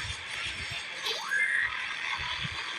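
A rising whoosh sweeps up sharply.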